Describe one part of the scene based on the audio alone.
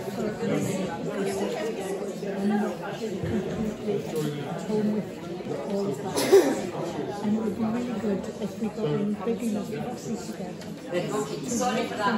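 A woman speaks with animation into a microphone in an echoing hall.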